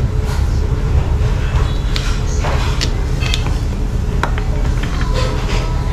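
Pepper is shaken onto a bowl of soup.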